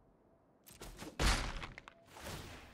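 A bright magical whoosh sounds.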